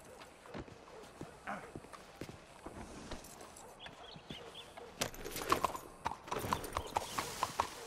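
A horse's hooves clop on stone.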